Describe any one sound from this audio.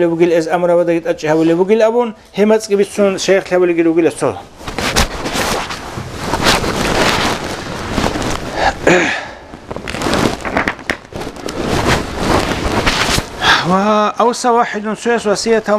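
A man recites in a melodic chanting voice close by.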